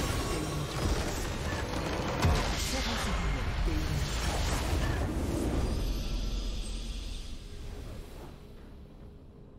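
Game spell blasts and explosions crash loudly, then fade.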